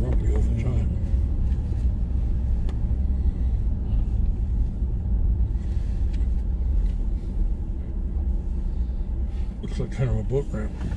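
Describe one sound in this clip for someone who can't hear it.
A car engine hums steadily from inside the car as it drives slowly.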